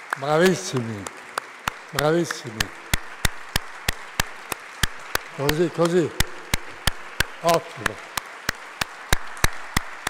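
An audience claps in a steady rhythm.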